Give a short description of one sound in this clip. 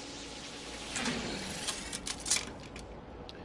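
Game menu clicks and blips sound.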